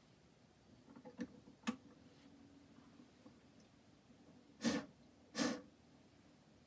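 Knocks and clicks sound as a gramophone is handled.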